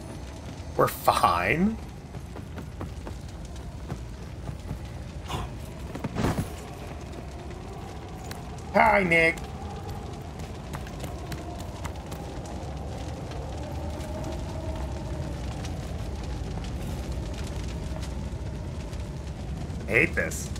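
A young man exclaims and talks in short bursts close to a microphone.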